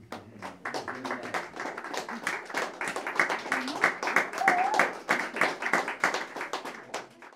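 A baritone saxophone plays short, percussive free jazz bursts.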